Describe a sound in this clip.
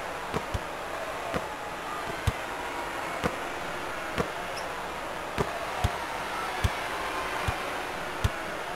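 A large crowd murmurs steadily in an arena.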